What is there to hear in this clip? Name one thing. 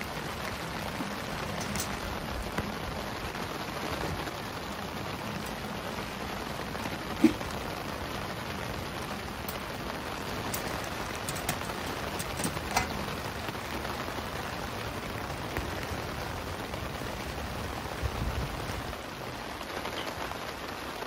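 A wood fire crackles and pops inside a small stove.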